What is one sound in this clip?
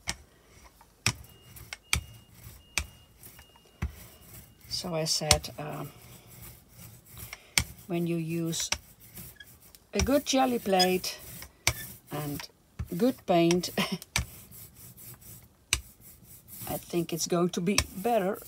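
A rubber roller rolls back and forth over a sticky surface.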